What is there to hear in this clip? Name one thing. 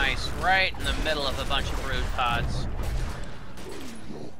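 Blows and magic effects crackle in a fight.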